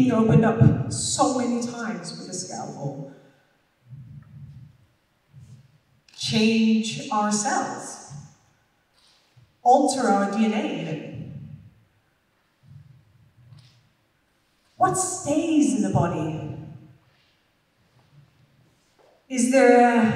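A woman speaks expressively through a headset microphone, with long pauses, in a large hall.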